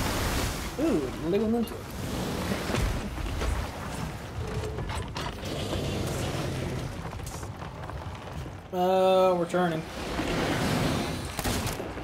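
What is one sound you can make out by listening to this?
Rough sea waves surge and splash.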